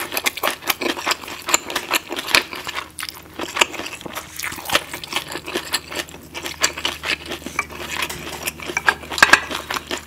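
A woman chews crunchy food close to a microphone with wet, crisp sounds.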